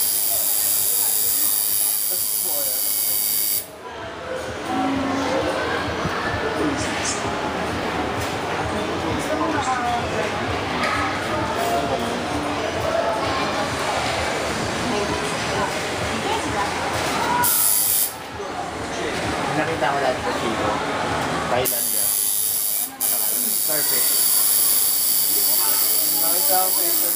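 A tattoo machine buzzes steadily.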